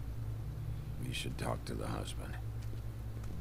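A man speaks quietly and seriously.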